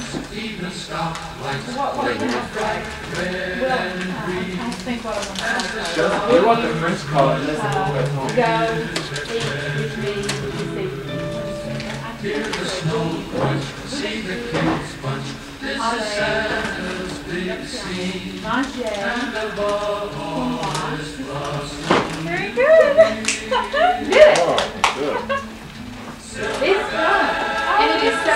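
Several men and women talk and chat at once nearby in a room.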